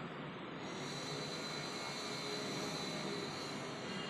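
Bare feet step onto a glass scale with a soft tap.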